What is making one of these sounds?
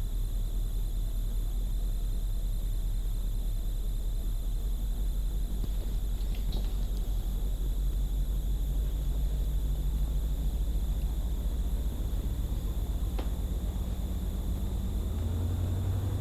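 A truck engine idles with a low hum.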